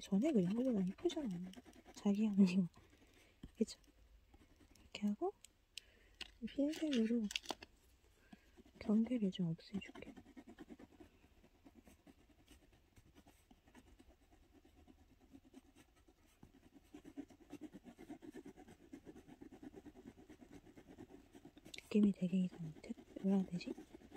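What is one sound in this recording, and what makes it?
A soft pastel scratches across paper.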